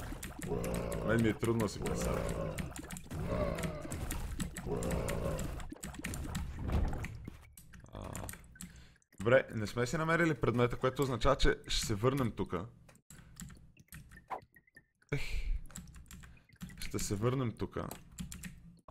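Game sound effects pop and splat.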